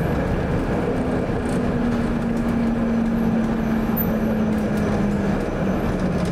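A tram's electric motor whines and slowly drops in pitch.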